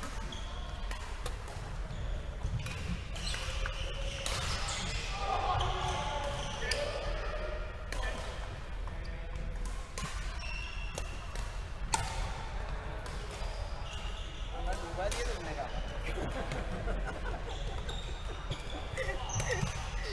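Badminton rackets hit shuttlecocks with sharp pops in a large echoing hall.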